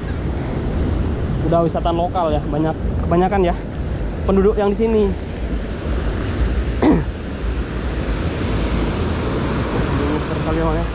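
Waves wash steadily onto a beach.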